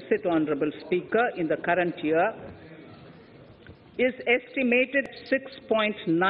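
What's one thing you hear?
A middle-aged woman speaks steadily through a microphone.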